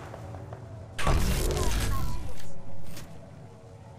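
Electric energy crackles and hums as a shield charges.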